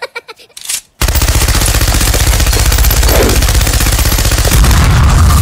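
A machine gun fires rapidly.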